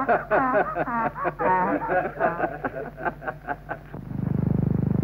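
A woman sings a melodic line.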